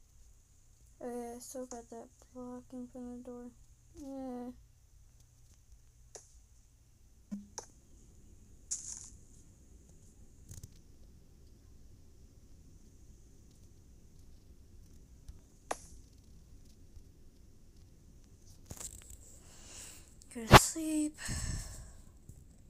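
A young girl speaks briefly and quietly into a nearby microphone.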